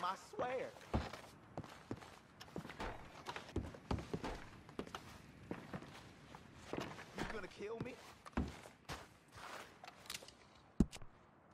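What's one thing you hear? Footsteps thud on creaky wooden boards.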